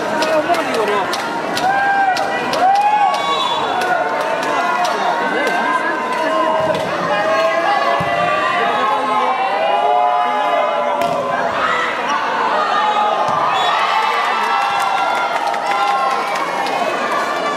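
A large crowd cheers and shouts throughout in a big echoing hall.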